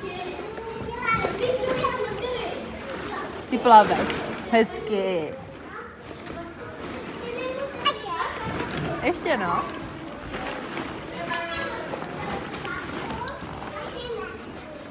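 A young child babbles and squeals nearby.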